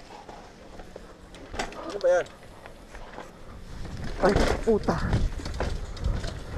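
Bicycle tyres roll and crunch over a dirt trail.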